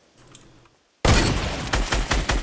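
Gunfire bursts out loudly in rapid shots.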